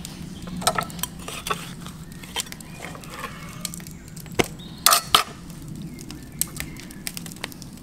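A knife slices through raw meat.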